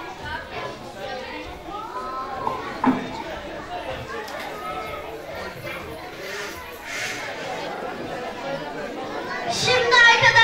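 Children speak quietly on a stage.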